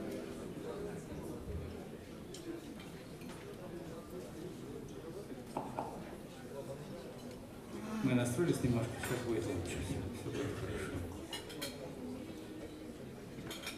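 A small jazz band plays with electric guitars, upright bass and drums.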